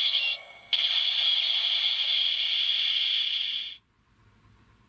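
A toy gadget plays a loud, steady electronic tone.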